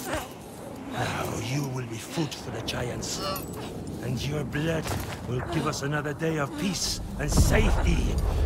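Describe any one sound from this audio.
A man speaks in a low, rough voice close by.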